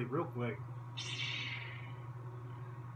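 A toy lightsaber ignites with a bright electronic whoosh.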